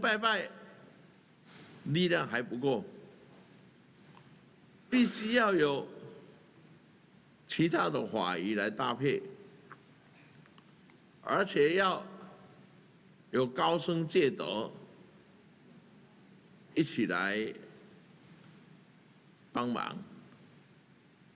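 An elderly man speaks calmly into a microphone in short, spaced phrases.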